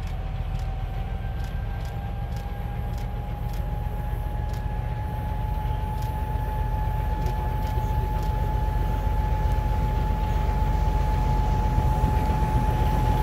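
A diesel locomotive rumbles as it approaches and grows louder.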